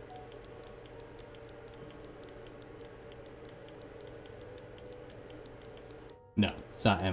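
A combination lock's dials click in quick, even ticks.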